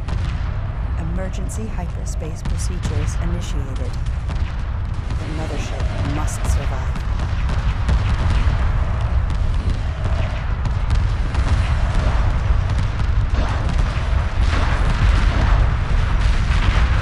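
A deep rumble of spaceship engines drones steadily.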